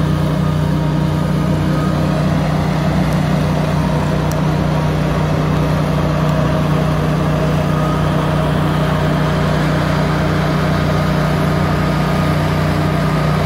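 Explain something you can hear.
A diesel log loader engine drones steadily outdoors.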